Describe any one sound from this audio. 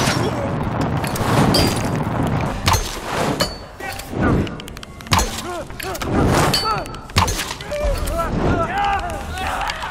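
A bowstring twangs as an arrow is released.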